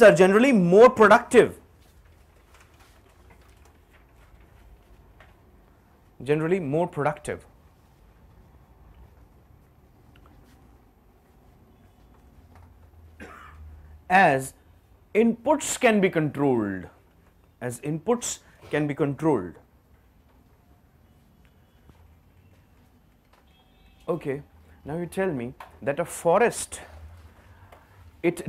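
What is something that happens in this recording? A man speaks clearly in a room, pausing between phrases.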